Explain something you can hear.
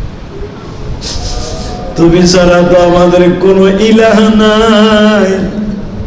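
A man chants in a tuneful, wavering voice through a microphone.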